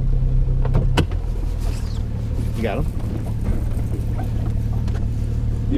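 A boat engine drones steadily at speed.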